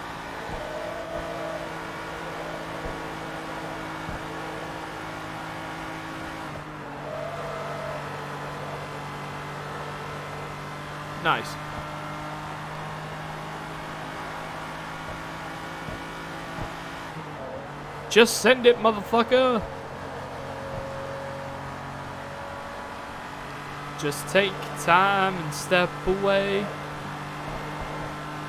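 A sports car engine drones steadily at high speed.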